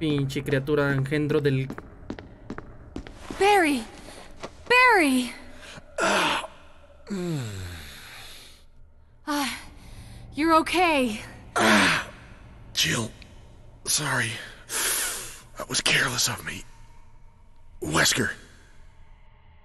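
A man talks into a microphone close by.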